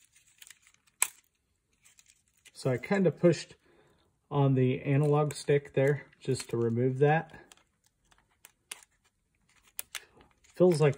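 Small plastic parts click and snap as they are handled.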